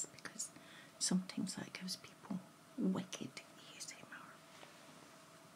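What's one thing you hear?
A middle-aged woman speaks softly close to a microphone.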